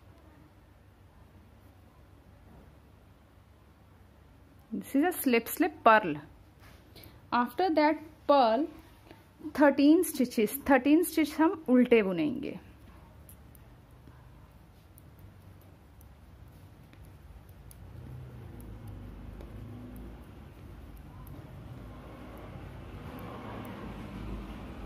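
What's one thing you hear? Knitting needles click softly.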